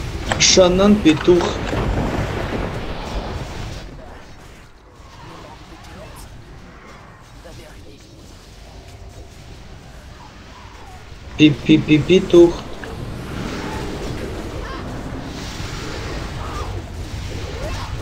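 Game battle effects crash and whoosh with spell blasts.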